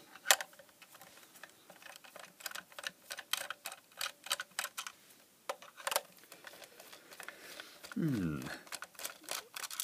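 A screwdriver clicks and scrapes against a screw in a plastic plug.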